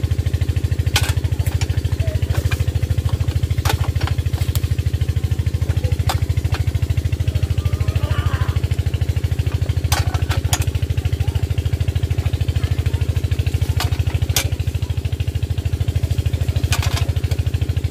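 A wrench clinks against metal nuts on an engine.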